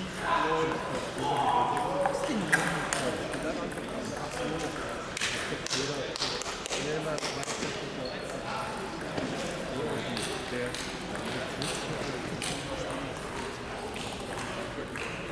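People talk in the background of a large echoing hall.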